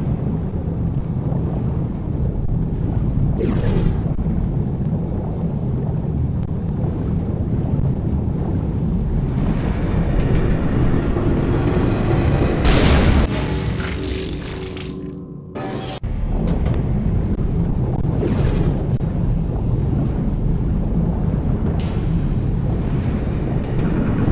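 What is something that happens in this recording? Water rushes and roars steadily, muffled as if underwater.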